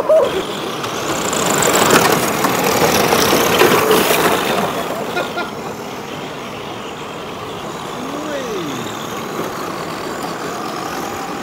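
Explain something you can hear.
Small electric motors whine as model cars race past.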